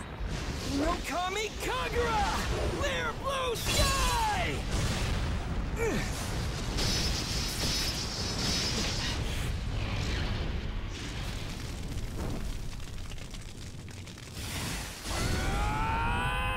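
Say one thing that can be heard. Flames roar and whoosh loudly.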